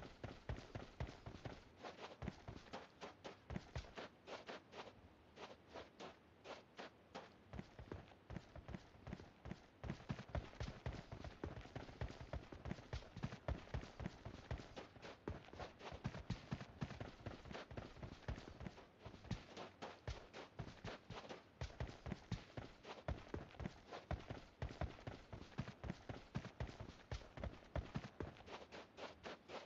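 Footsteps crunch quickly over dry dirt and gravel.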